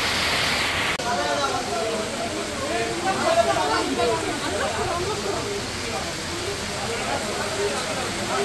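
A crowd of men talks and shouts loudly nearby.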